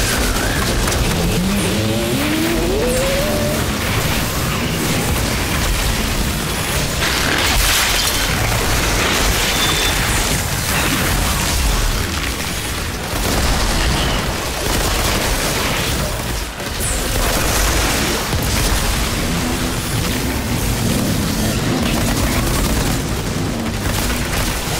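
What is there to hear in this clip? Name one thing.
Monsters roar and growl.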